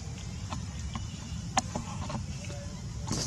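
A baby monkey squeaks softly up close.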